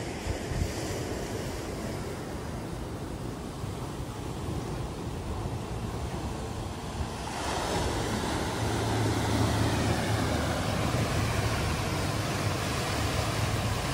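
Wind blows outdoors, rumbling.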